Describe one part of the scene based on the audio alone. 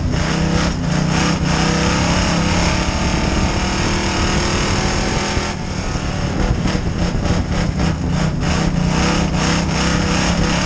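A race car engine roars loudly up close, revving and easing off through the turns.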